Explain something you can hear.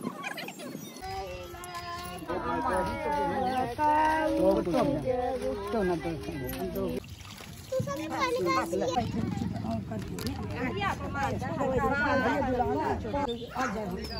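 Women talk and chatter nearby.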